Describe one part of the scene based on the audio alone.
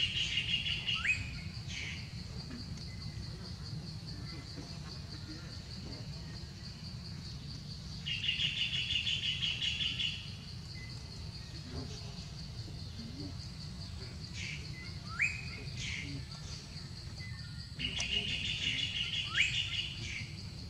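A monkey gives short, high squeaks.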